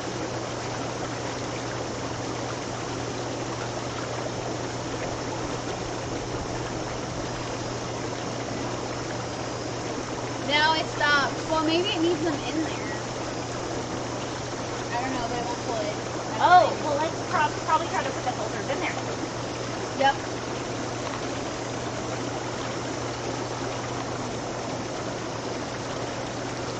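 Water bubbles and churns steadily in a hot tub outdoors.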